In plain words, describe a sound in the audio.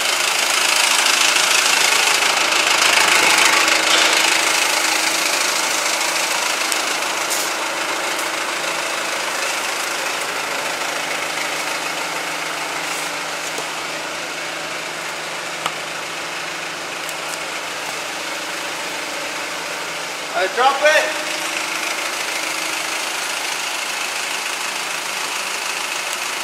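A forklift engine idles with a steady low hum.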